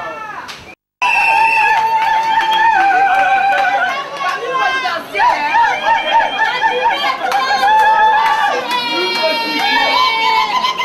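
A woman sings loudly through a loudspeaker.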